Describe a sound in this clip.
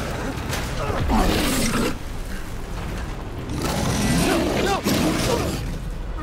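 A large beast growls low and rough, close by.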